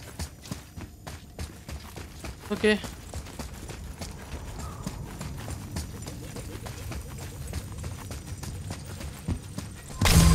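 Footsteps run over stone.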